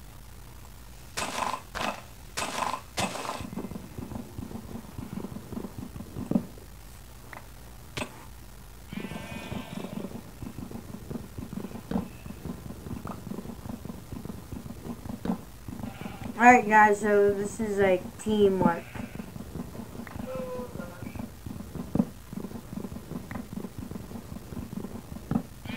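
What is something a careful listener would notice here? Leaves and wood crunch with quick, repeated soft knocks as blocks are dug away.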